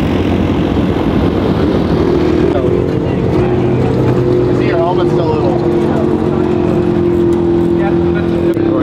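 Small engines idle and rumble steadily nearby.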